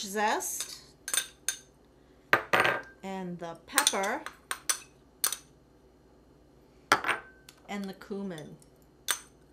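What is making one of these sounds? A middle-aged woman talks calmly and clearly, close by.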